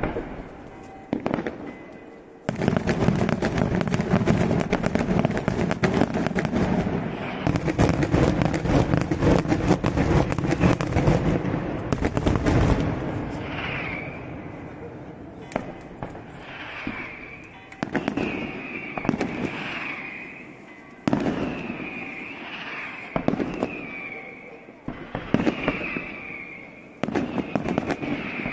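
A daytime firework barrage crackles and bangs in the distance, echoing off hills.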